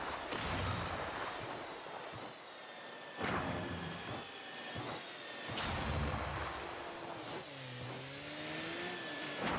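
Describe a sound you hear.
A racing car engine roars and whooshes as it boosts forward.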